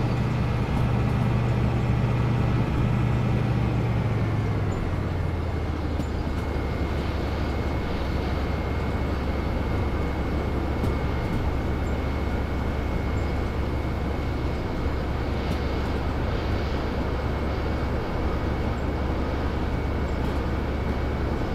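Train wheels rattle and clack on the rails.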